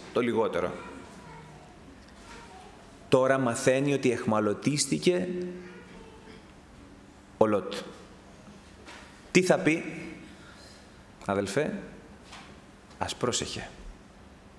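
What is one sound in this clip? A middle-aged man speaks slowly and earnestly into a microphone, with pauses, in a room with a slight echo.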